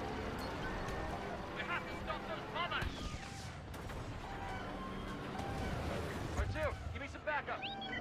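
Laser cannons fire in rapid bursts.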